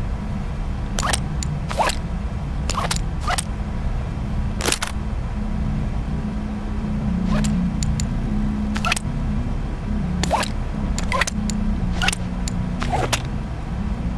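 A gun clicks and clacks as it is handled and loaded.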